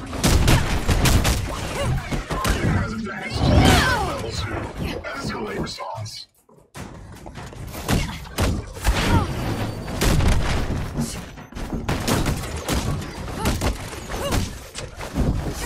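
Energy blasts crackle and boom.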